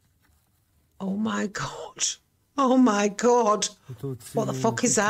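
A middle-aged woman speaks with animation, close to a microphone.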